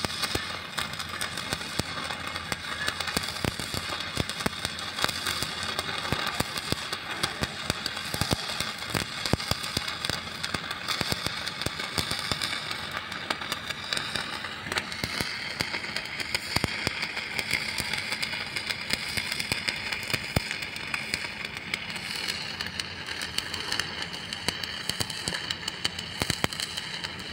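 A welding arc crackles and sizzles steadily up close.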